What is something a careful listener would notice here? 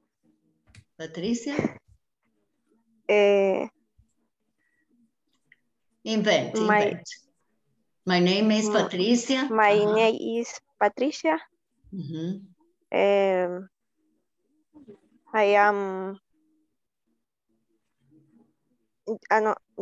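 A woman speaks calmly through an online call, in short phrases with pauses.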